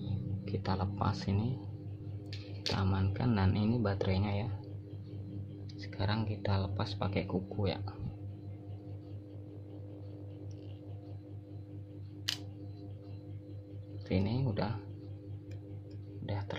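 Small plastic parts click and tap as a phone is taken apart.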